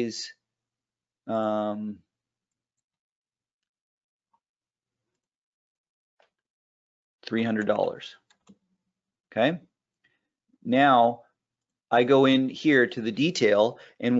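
A man speaks calmly into a microphone, in pauses.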